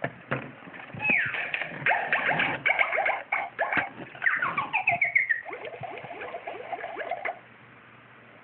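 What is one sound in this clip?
A plastic baby toy plays electronic tunes and sound effects.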